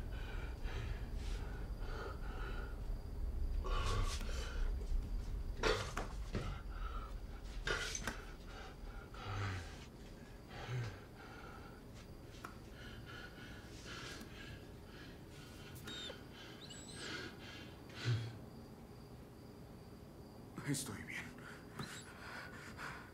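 A man breathes heavily and pants close by.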